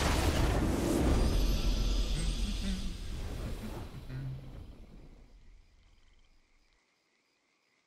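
A triumphant fanfare plays and then fades away.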